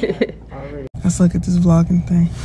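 A woman talks casually, close up.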